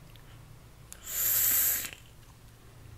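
A vape device sizzles briefly as it fires.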